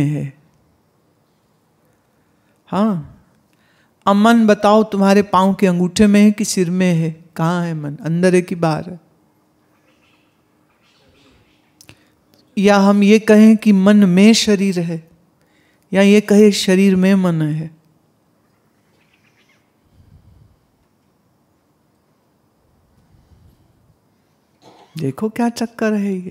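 A woman chants melodically into a microphone, in phrases separated by pauses.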